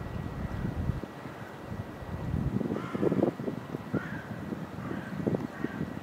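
A duck dabbles and splashes its bill in shallow water.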